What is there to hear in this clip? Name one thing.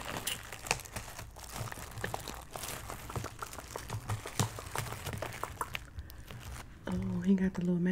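Plastic wrap crinkles and rustles close to a microphone.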